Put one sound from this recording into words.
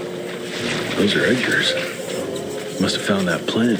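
Footsteps squelch slowly through wet, marshy ground.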